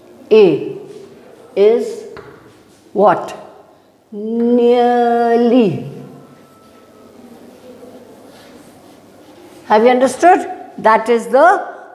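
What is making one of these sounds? An elderly woman speaks with animation, drawing out her words in a sing-song way.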